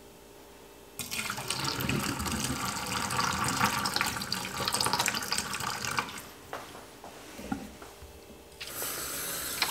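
Thick liquid gurgles and splashes as it pours into a sink drain.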